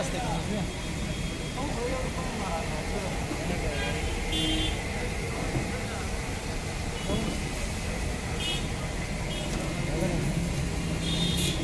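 Outdoor street noise hums steadily throughout.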